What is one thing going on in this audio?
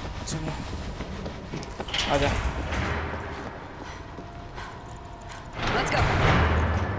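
Footsteps clank on a metal walkway.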